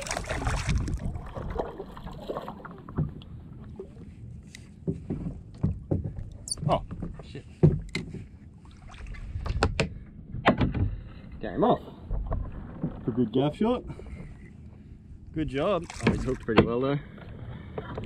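Water laps and splashes against a small boat.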